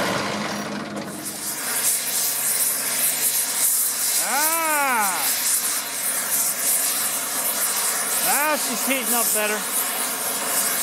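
A cutting torch flame hisses and roars steadily.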